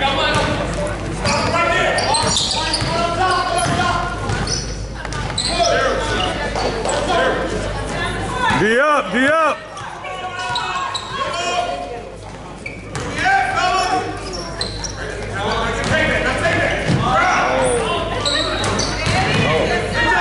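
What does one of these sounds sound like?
Spectators talk and call out nearby in a large echoing gym.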